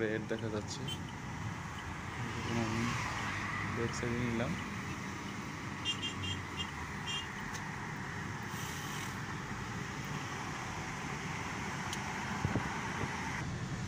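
Passing cars whoosh by close outside the window.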